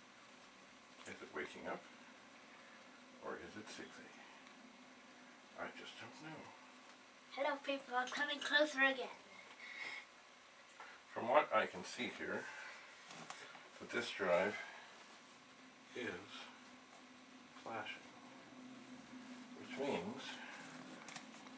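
An elderly man talks calmly nearby, in short bursts.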